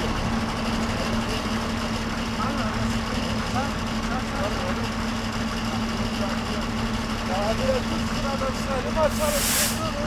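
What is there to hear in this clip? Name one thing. A diesel truck engine idles with a steady low hum.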